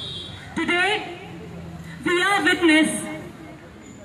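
A young woman speaks through a microphone and loudspeaker outdoors.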